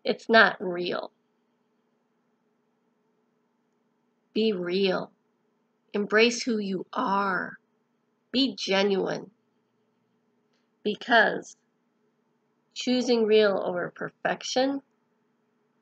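A middle-aged woman speaks calmly and close to a microphone, in short phrases with pauses.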